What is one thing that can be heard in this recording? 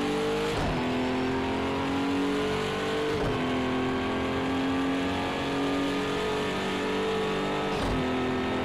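A racing car engine roars at high revs, shifting up through the gears with a brief dip at each change.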